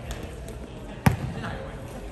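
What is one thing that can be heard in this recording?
A volleyball is bumped with a hollow thud in a large echoing gym.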